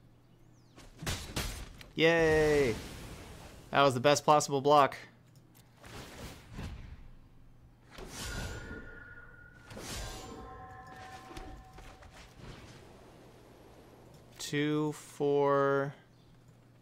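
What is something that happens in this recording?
A game sound effect whooshes and rings.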